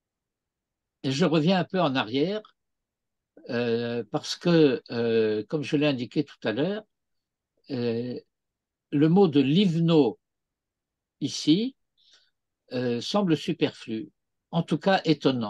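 An elderly man speaks calmly over an online call, pausing between phrases.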